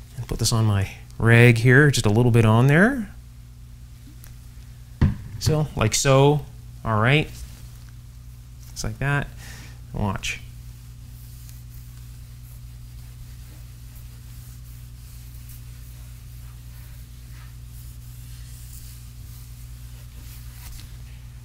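A cloth rubs and wipes over a wooden surface.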